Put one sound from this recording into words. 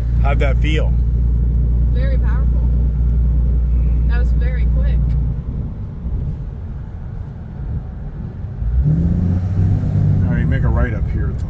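A vehicle engine hums with a low road rumble inside the cab.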